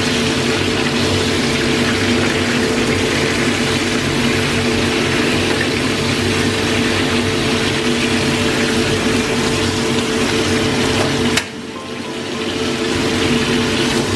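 Fish sizzles loudly in hot oil.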